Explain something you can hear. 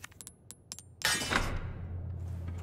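A metal sword scrapes loudly as it slides free from a metal wall plaque.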